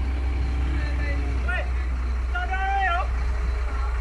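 A man calls out from a distance outdoors.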